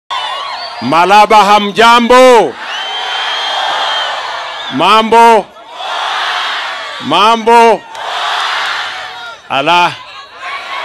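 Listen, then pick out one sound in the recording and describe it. A man shouts loudly in short chants.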